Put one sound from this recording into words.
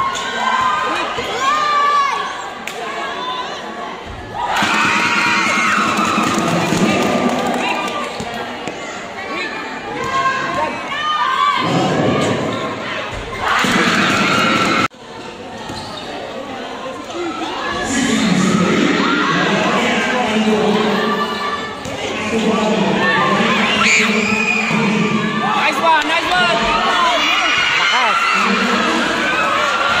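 A crowd of spectators chatters and cheers loudly in an echoing hall.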